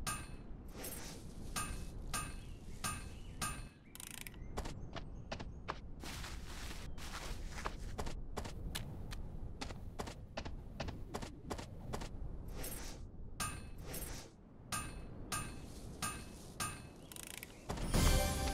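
Quick footsteps patter steadily.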